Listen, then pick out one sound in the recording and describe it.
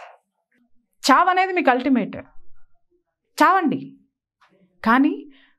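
A middle-aged woman speaks with animation and emphasis into a close microphone.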